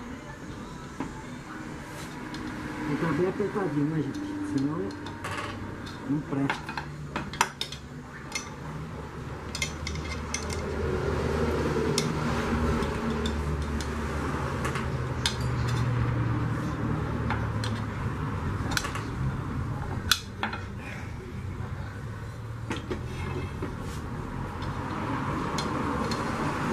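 A metal tool scrapes and taps inside a metal pan.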